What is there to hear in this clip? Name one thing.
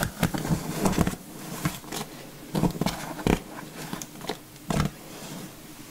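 A comb scrapes through wet hair.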